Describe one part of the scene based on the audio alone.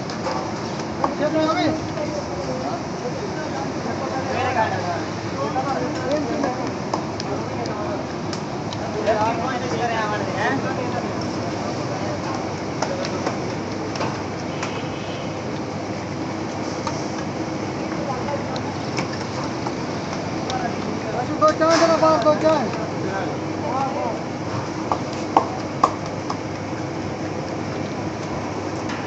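Oil sizzles and hisses steadily in a large pan.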